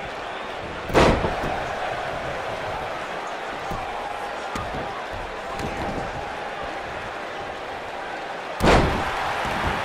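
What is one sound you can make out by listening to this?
Heavy thuds ring out as wrestlers slam onto a ring mat.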